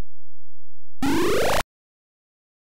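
An electronic jingle rises quickly in pitch.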